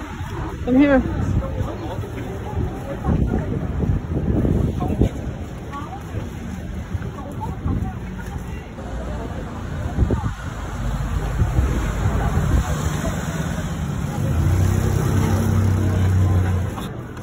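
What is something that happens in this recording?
Street noise and a crowd's chatter murmur all around outdoors.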